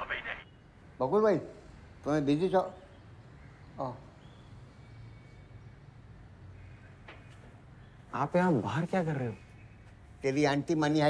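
An elderly man speaks calmly into a phone.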